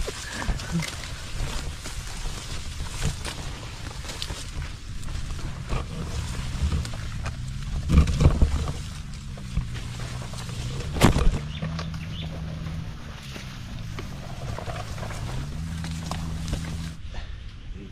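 Leaves rustle as a person pushes through dense plants.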